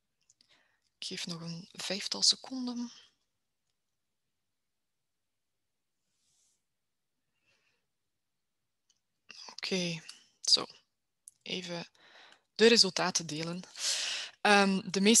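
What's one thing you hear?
A young woman speaks calmly through an online call, with pauses.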